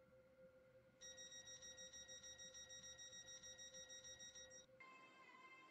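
A door warning beeps rapidly and repeatedly.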